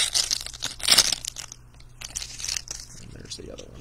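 Plastic wrapping crinkles and rustles in hands.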